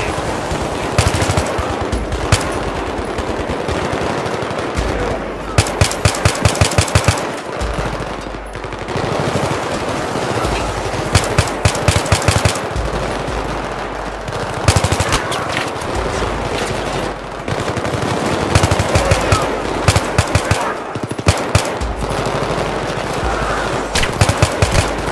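A rifle fires in rapid bursts of sharp shots.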